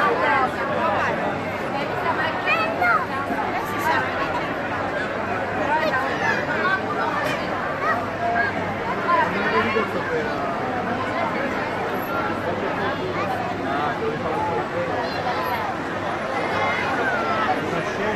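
A crowd of men and women chatters and shouts loudly outdoors.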